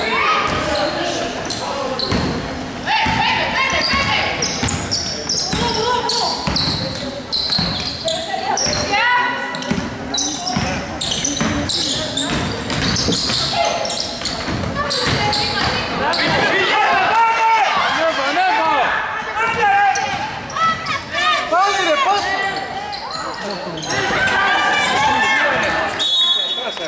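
Young women players shout and call out across an echoing hall.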